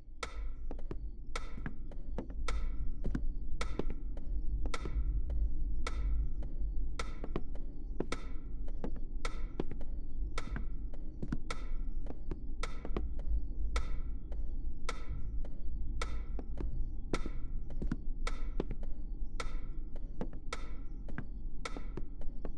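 Footsteps thud steadily across wooden floorboards.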